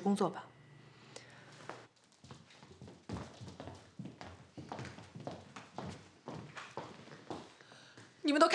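Footsteps shuffle across a hard floor.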